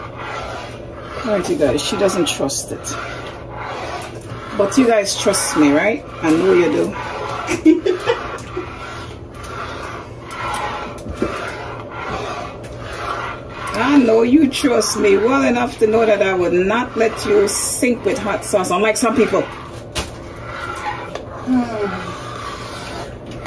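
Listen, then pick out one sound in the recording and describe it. A spoon stirs thick soup in a metal pot with soft squelching and scraping.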